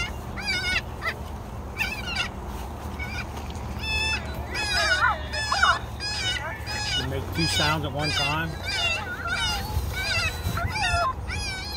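A loudspeaker plays loud, repeated high bleating calls of a young deer.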